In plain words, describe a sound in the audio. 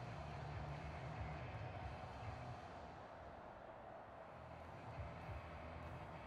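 A large stadium crowd roars and cheers in the distance.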